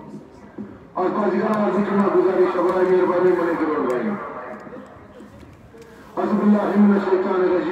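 A man shouts loudly from the crowd across an open field.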